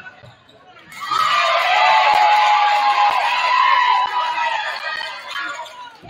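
A crowd in an echoing gym cheers loudly.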